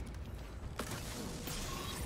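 An energy beam crackles and hums.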